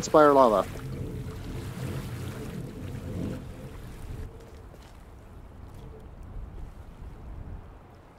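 Sea waves surge and wash against rocks.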